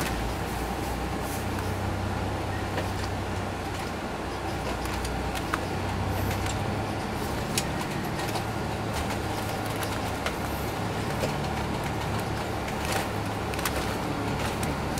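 A bus engine hums steadily from inside.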